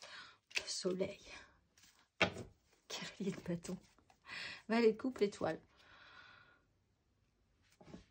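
Playing cards rustle and slap softly as they are shuffled and laid down.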